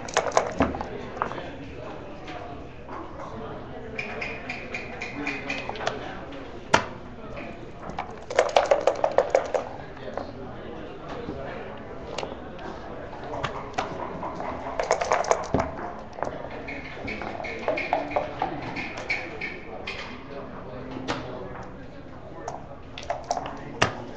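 Game pieces clack against a wooden board.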